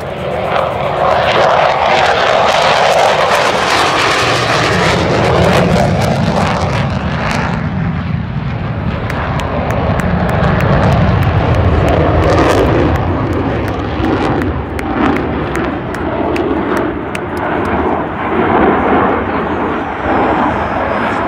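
A jet roars loudly overhead as it flies past.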